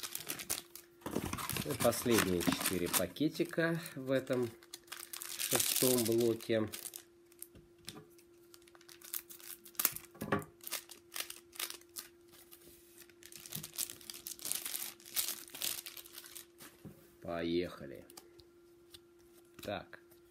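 Paper crinkles and rustles in hands.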